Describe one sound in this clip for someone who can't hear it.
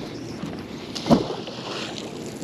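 A heavy magnet splashes into water.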